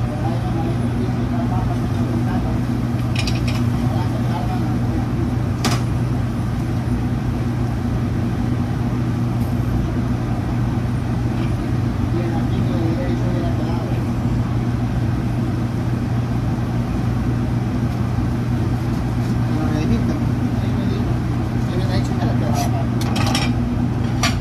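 An exhaust hood hums steadily.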